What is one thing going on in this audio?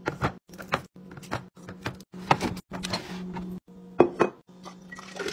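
Cartons knock and clatter against plastic.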